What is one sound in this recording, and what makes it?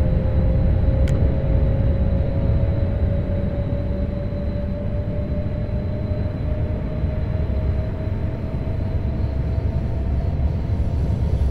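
An electric motor whines with a slowly rising pitch.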